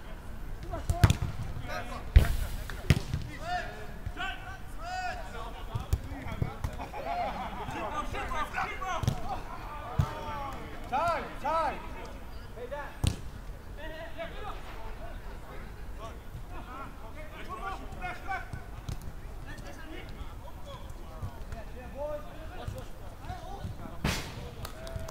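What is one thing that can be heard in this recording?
A football is kicked with sharp thumps.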